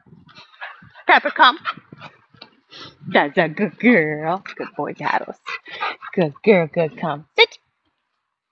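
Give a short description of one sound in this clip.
A young woman calls out excitedly to a dog from a distance.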